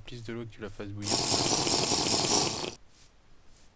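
A character gulps down a drink.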